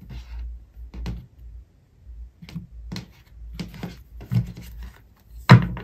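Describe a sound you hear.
Cards tap softly onto a table as they are dealt.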